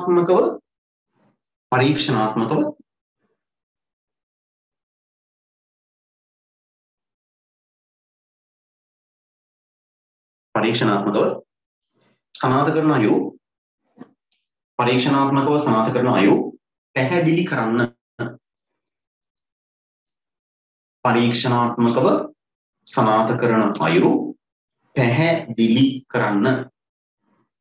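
A man speaks calmly into a close microphone, in short bursts with long pauses.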